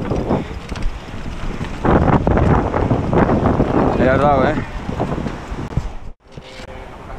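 A bicycle rattles and bumps over a rocky trail.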